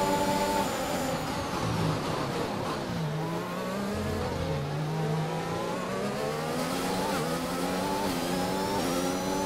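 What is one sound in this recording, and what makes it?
A racing car engine roars, dropping in pitch as it shifts down and rising again as it speeds up.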